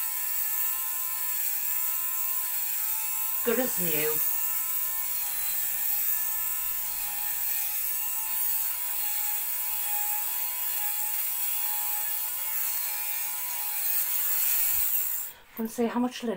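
A small electric fabric shaver buzzes steadily.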